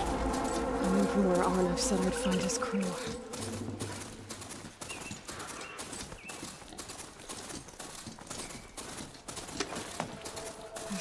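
Heavy mechanical hooves clatter quickly on a dirt path.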